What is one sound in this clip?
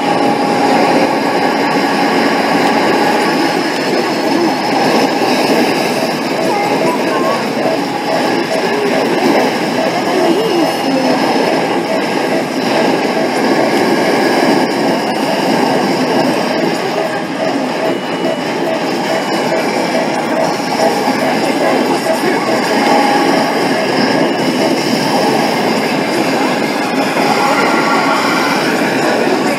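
Arcade game music and battle sound effects play loudly from a machine's speakers.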